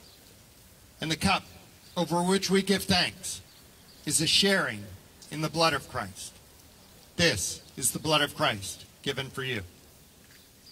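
A middle-aged man speaks with animation through a headset microphone and loudspeakers, outdoors.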